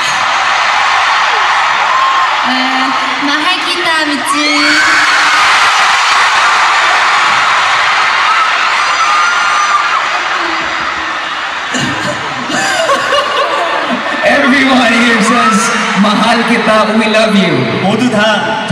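A young woman speaks cheerfully through a microphone over loudspeakers.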